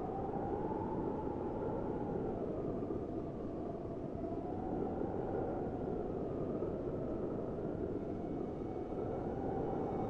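Wind howls steadily and low.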